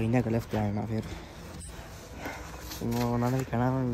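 A young man talks casually, close by.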